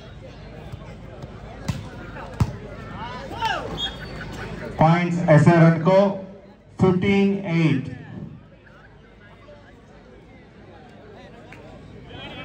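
A crowd chatters in the distance outdoors.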